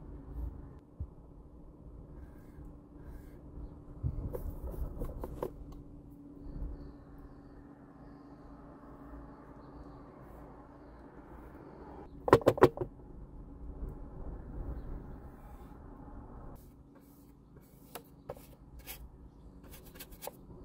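A paintbrush dabs and scrapes softly on a canvas.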